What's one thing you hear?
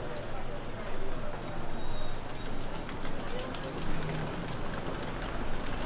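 A suitcase's wheels rattle over paving.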